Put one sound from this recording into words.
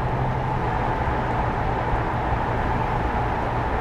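A car engine drones steadily while driving.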